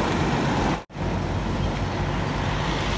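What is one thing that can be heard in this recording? A parked truck's engine idles.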